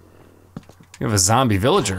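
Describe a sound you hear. A zombie groans nearby in a video game.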